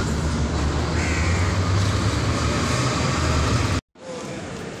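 Pigeons flutter and coo nearby outdoors.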